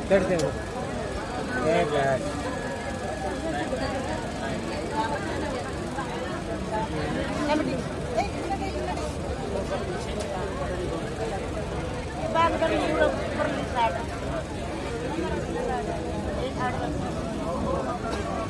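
Several people talk at once in a crowd nearby.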